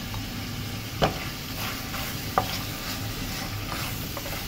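A wooden spoon scrapes and knocks against a pan.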